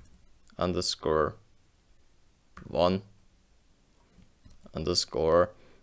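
A young man speaks calmly and close up, in short phrases.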